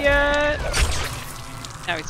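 A heavy blade strikes flesh with a wet, sudden thud.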